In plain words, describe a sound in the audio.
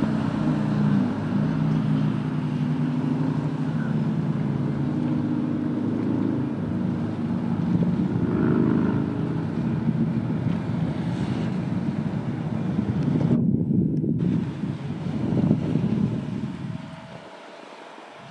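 Water sprays and hisses behind a water skier.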